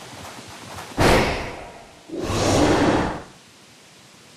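A magical burst whooshes loudly and fades.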